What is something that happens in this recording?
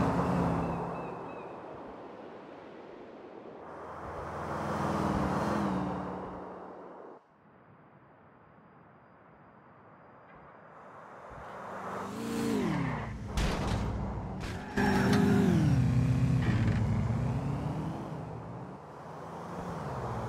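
Car engines roar past, rising and falling in pitch.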